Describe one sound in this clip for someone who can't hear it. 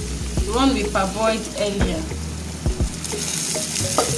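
Pieces of meat tumble into a pan.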